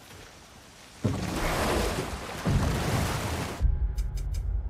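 Water splashes around a wooden boat.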